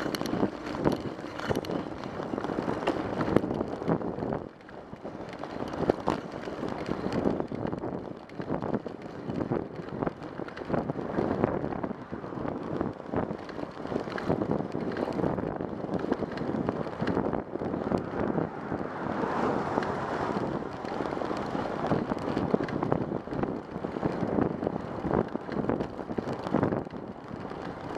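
Wind buffets a microphone loudly, in rough gusts.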